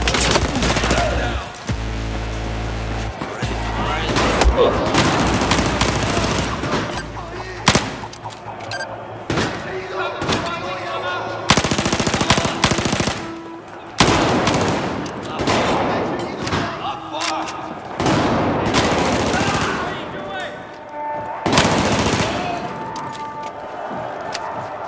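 Rapid gunfire bursts out in loud volleys.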